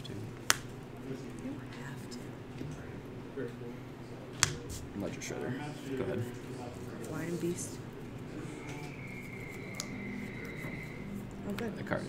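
Cards are shuffled in a hand.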